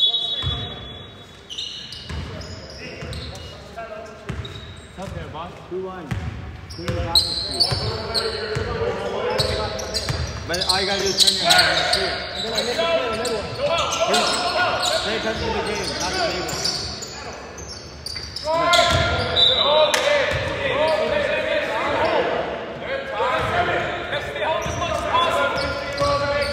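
Men shout to each other during a basketball game in a large echoing hall.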